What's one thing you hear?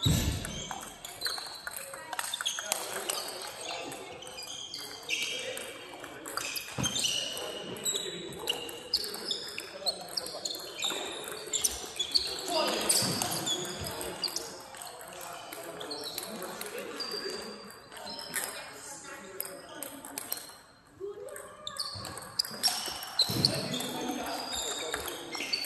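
Table tennis balls click back and forth on paddles and tables in a large echoing hall.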